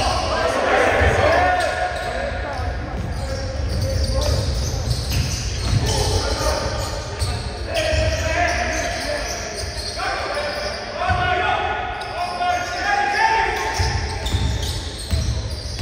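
Sneakers squeak sharply on a hard court in an echoing hall.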